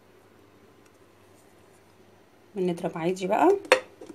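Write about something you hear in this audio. A plastic lid clicks onto a food processor bowl.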